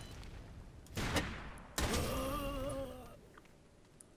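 A loud explosion booms and rings out.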